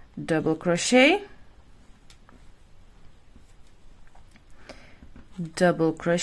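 A crochet hook clicks softly against yarn.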